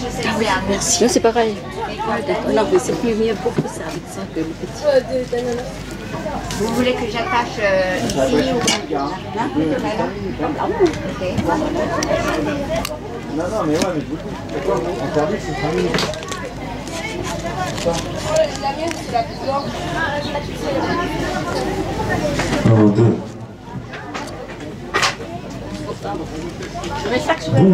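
A knife slices through the tough skin of a pineapple with soft, crunchy scrapes.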